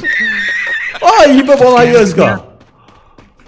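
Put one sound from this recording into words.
A man laughs loudly and with animation close to a microphone.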